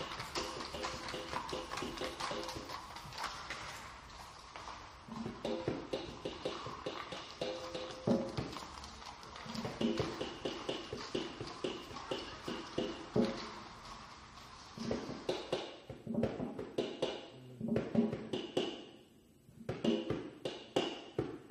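A piano plays a lively jazz line.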